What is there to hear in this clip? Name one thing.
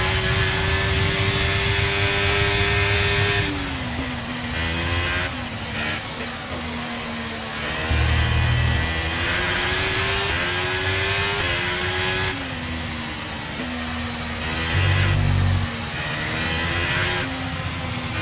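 A racing car engine screams at high revs, dropping in pitch when braking and rising again as it speeds up.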